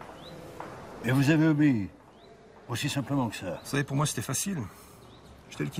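An elderly man speaks with feeling, close by.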